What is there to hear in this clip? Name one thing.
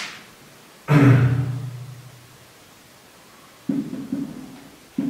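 A man speaks calmly, as if explaining.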